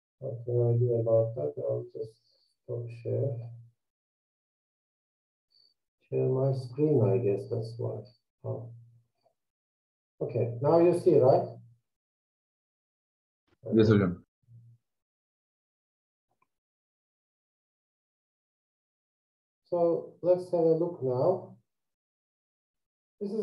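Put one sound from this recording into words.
A middle-aged man speaks calmly through an online call, in short phrases with pauses.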